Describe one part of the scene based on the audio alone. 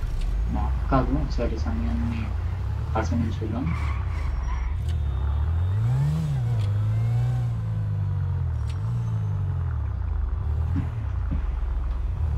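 A car engine revs and changes pitch as the car speeds up and slows down.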